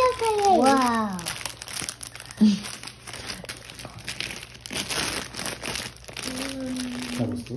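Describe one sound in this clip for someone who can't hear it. Foil wrapping crinkles and tears.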